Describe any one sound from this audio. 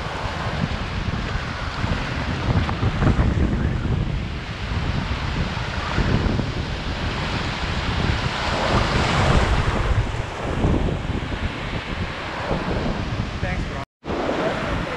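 Waves wash and splash in the shallows.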